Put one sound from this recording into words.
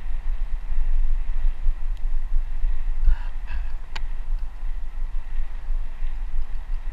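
Wind rumbles hard against a moving microphone.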